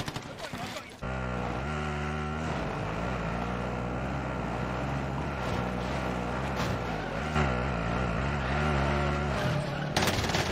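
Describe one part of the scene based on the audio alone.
A quad bike engine drones steadily.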